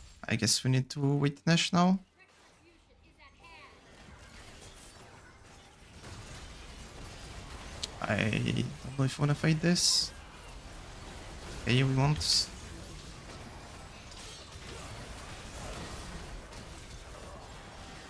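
Video game spells whoosh and crackle during a fight.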